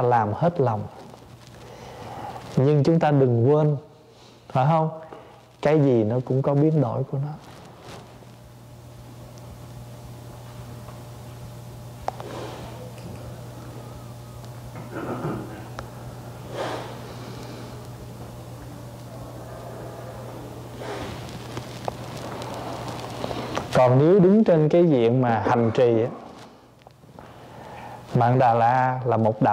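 A man speaks calmly and warmly into a microphone, with long pauses.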